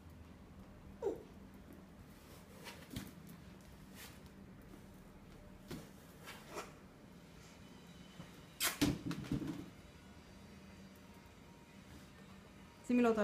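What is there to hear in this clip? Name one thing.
A balloon bumps and rubs against a hard floor.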